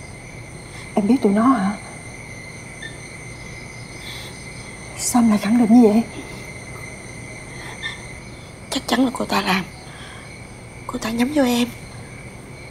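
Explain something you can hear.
A young woman speaks sharply and close by.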